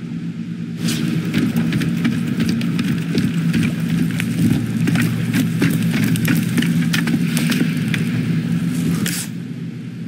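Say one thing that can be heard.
Footsteps thud on wooden stairs and planks.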